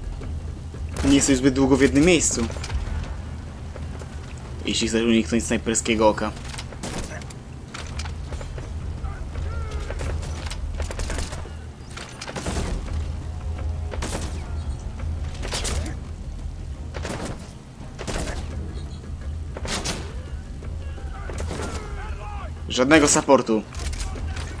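A rifle fires single muffled shots again and again.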